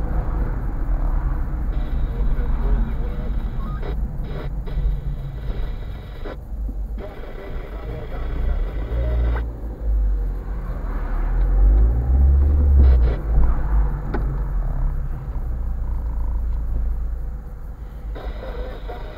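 Tyres rumble steadily on the road, heard from inside a moving car.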